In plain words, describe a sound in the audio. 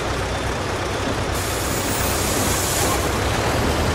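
A bus door hisses shut.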